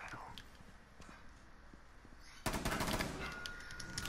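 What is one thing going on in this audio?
A gun fires a quick burst of shots.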